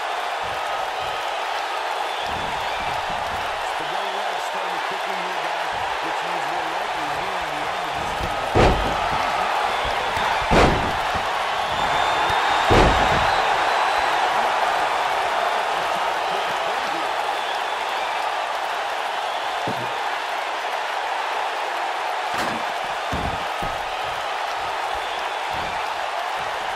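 A large crowd cheers steadily.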